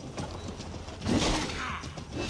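A sword strikes with a sharp impact.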